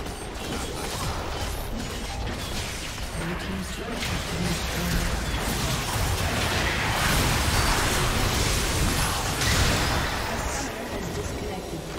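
Game combat effects clash and burst in quick succession.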